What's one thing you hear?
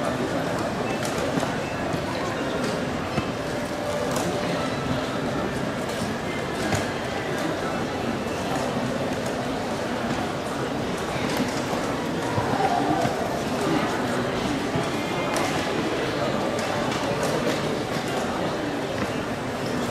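Wooden chess pieces are set down on a wooden board.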